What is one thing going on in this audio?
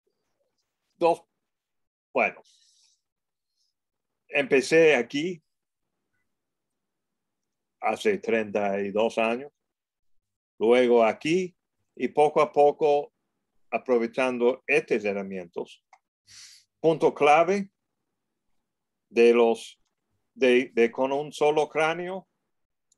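A man talks calmly over an online call, with pauses.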